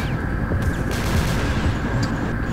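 A rocket fires with a sharp whoosh.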